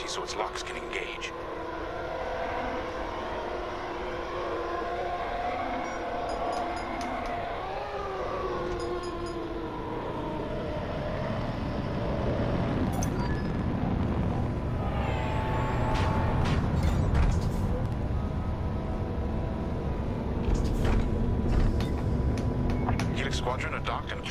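A fighter craft's engine roars with a low, steady rumble that grows louder.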